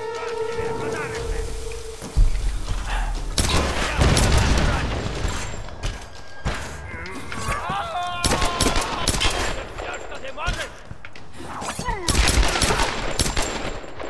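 Pistol shots ring out in quick bursts.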